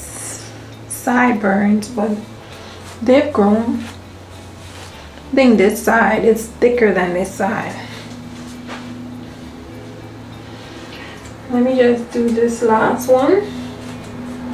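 A young woman talks to the microphone close by, in a casual, animated way.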